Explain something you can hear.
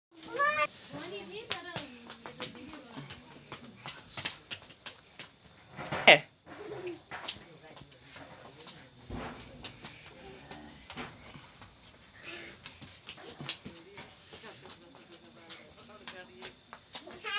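Small children squeal and shout playfully nearby.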